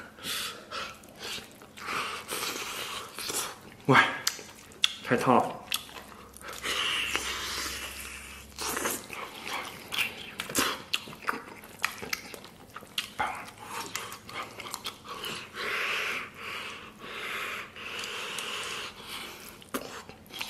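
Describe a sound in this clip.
A man chews and slurps food noisily up close.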